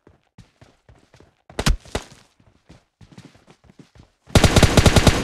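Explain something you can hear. Footsteps run across the ground.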